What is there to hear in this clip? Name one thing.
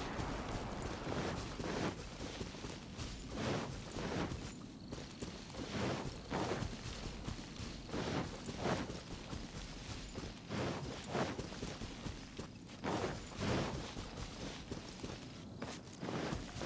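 Footsteps rustle through tall grass at a steady running pace.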